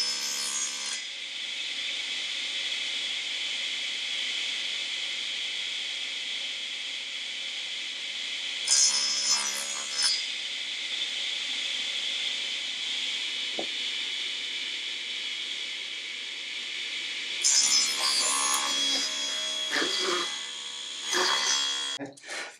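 A saw blade cuts through wood in short bursts.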